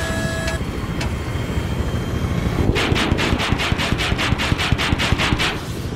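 Rockets launch in rapid succession with sharp whooshing bangs.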